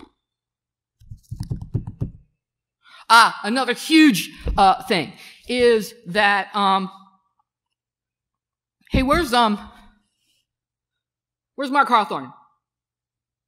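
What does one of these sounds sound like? A man speaks expressively into a microphone, with pauses.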